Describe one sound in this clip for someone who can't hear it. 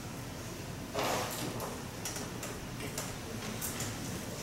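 Objects clatter and rustle softly close by.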